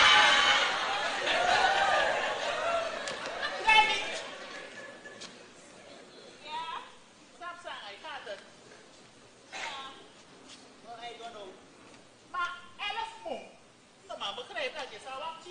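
A woman speaks loudly and with animation on a stage.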